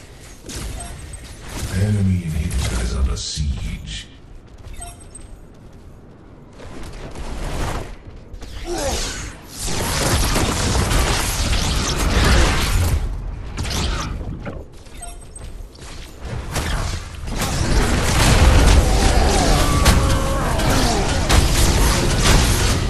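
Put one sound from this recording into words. Gunfire and energy blasts crackle in a fast game fight.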